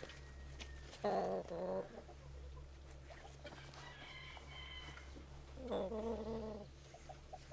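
Chickens cluck and squawk close by.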